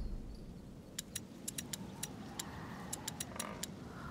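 Soft, sharp clicks tick quickly as menu options are picked.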